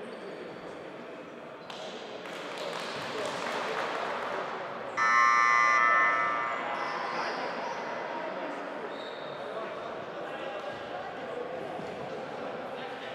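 Players' shoes thud and squeak on a hard court in an echoing hall.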